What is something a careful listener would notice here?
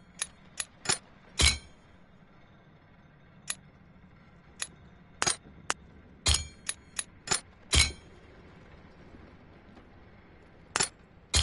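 Short, bright menu clicks and chimes sound now and then.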